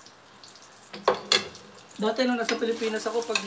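A wooden spoon scrapes and knocks against a pot.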